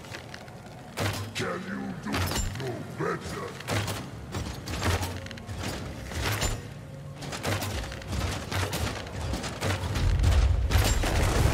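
A ranged weapon fires a rapid series of shots.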